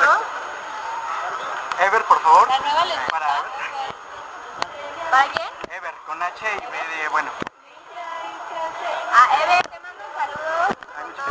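Young women chat casually, close to a phone microphone.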